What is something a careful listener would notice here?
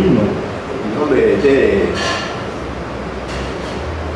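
A middle-aged man talks with animation.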